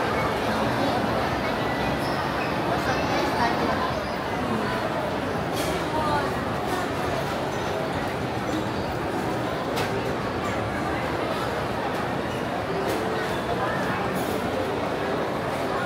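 A crowd murmurs and chatters throughout.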